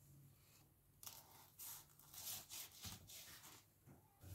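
A knife cuts on a wooden board.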